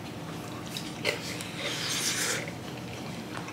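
A young woman slurps noodles.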